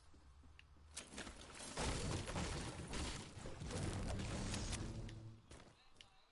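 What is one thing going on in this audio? A pickaxe strikes and breaks wooden furniture with loud thuds.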